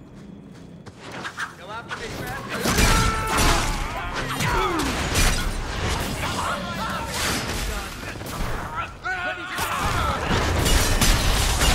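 Swords clash and strike loudly in a fierce fight.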